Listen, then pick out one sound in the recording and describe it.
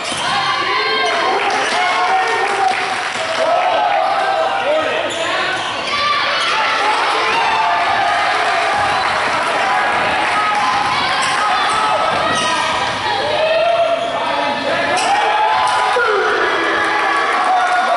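Young men shout across a large echoing gym.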